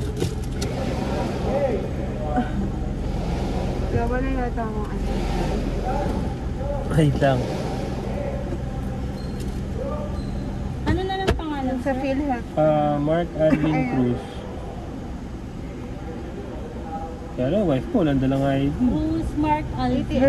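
A young woman talks, close by.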